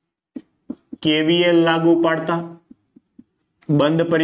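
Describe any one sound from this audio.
A man speaks calmly close by, as if explaining.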